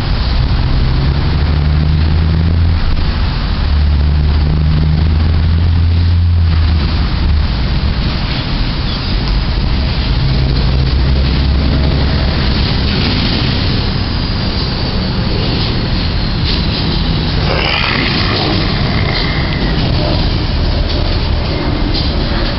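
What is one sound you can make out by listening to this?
Wind blows roughly across the microphone outdoors.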